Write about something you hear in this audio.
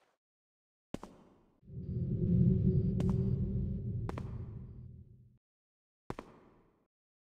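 Footsteps thud softly on stone.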